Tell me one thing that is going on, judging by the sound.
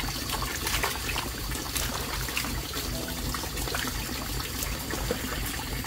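Water splashes and drips as hands rinse meat in a basin.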